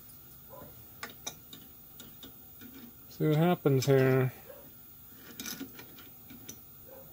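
Metal tools click and tap together close by.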